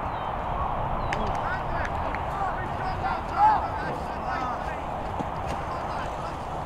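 Young men shout and cheer in the distance outdoors.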